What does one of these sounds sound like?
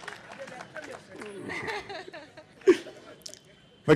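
An audience laughs softly.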